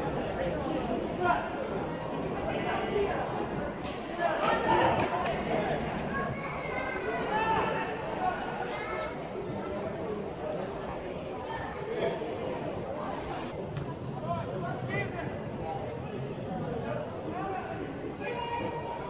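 Football players shout and call to each other across an open pitch, heard from a distance.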